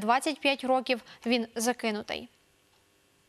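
A young woman reads out calmly into a microphone.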